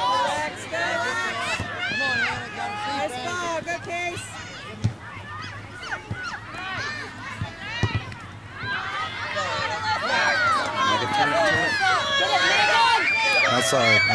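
A soccer ball thuds when kicked.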